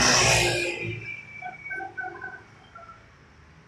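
A motor scooter passes close by and fades into the distance.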